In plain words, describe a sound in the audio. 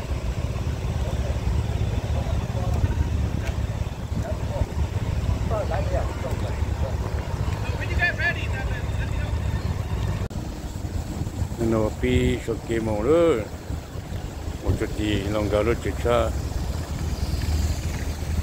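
Motorcycle engines idle with a low, steady rumble.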